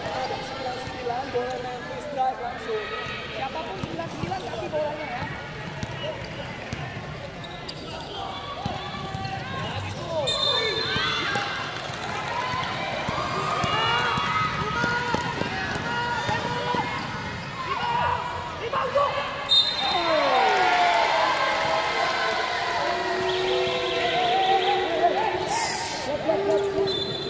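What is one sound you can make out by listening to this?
A basketball bounces on a court.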